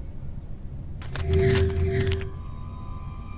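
A bright magical shimmer chimes briefly.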